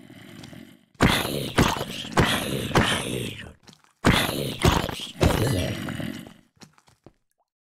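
Blows thud against a game zombie.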